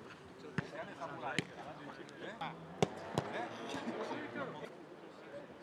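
A young man talks casually outdoors.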